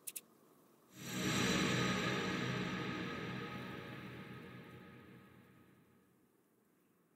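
A bright musical fanfare swells and slowly fades.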